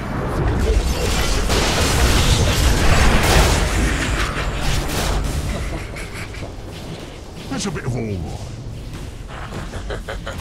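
Magic spells crackle and whoosh in a fierce fight.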